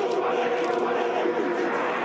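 A group of men chant loudly in unison, in a large stadium.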